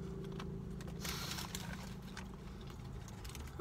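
A paper wrapper crinkles.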